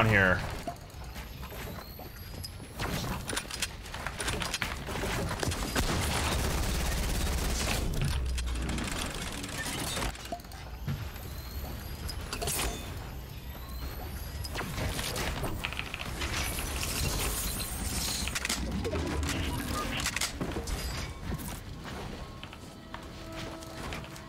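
Quick clacks and thuds of building pieces snapping into place in a game.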